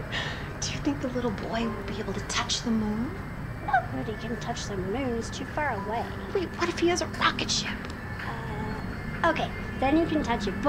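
A young girl speaks softly and curiously.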